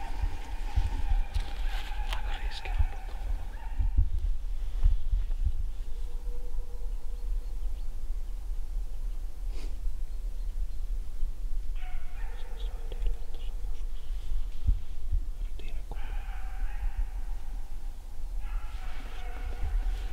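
A young man speaks quietly close by.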